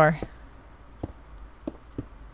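Stone blocks knock softly as they are set down.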